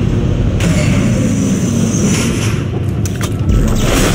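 A heavy metal door slides open with a hiss.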